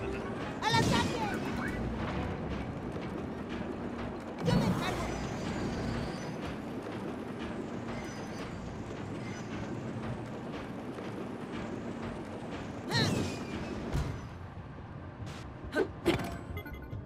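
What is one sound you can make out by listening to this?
A rail cart rumbles and rattles steadily along metal tracks.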